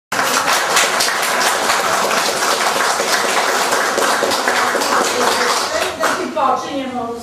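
A group of people applauds.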